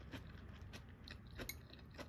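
Chopsticks tap lightly against a small dish.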